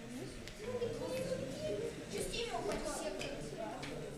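A young girl talks close by.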